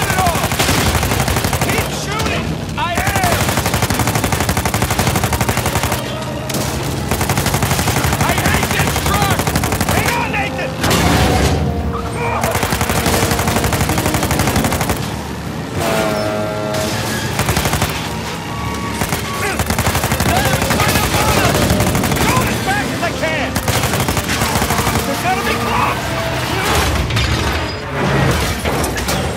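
Explosions boom and crackle with fire.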